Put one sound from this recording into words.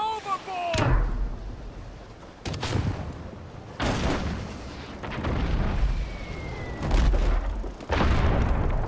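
Cannons fire in heavy, booming blasts, several times.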